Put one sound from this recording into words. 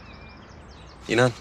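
A second man speaks quietly, close by.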